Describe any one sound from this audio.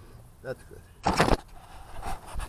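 A hand rubs and bumps against the microphone.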